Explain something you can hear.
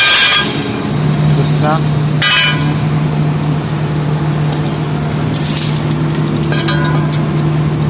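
A boot knocks and scrapes against a heavy metal gear wheel.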